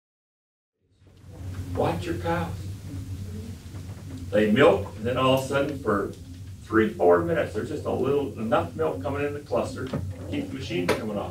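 An elderly man speaks calmly through a microphone and loudspeaker.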